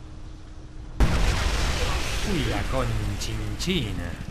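A loud explosion booms close by, followed by a rumbling roar.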